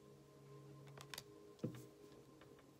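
A card is laid down with a soft tap on a wooden table.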